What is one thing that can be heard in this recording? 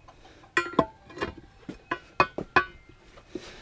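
A metal bar knocks and clanks against a steel wheel rim.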